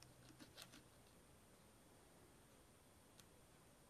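Pliers click faintly against metal.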